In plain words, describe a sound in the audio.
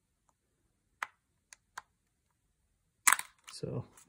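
A metal tool clicks against a plastic casing as it pries the casing open.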